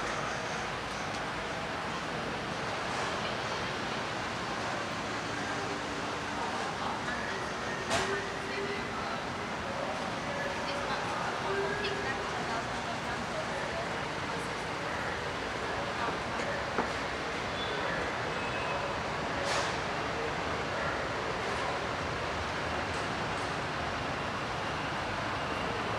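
Steady street noise hums all around outdoors.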